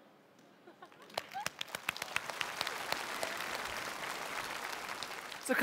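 An audience applauds in a large hall, growing louder.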